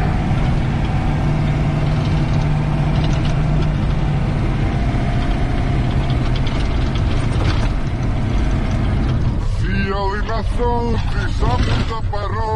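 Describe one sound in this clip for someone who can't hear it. A heavy armoured vehicle's engine rumbles loudly as it drives.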